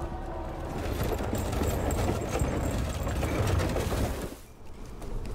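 Horses' hooves clop slowly on dry ground.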